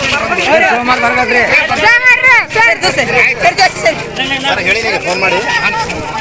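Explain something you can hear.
An older man speaks loudly over the crowd.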